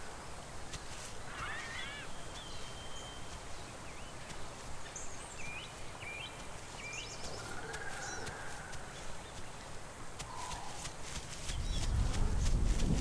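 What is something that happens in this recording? A small dinosaur's feet patter quickly through grass.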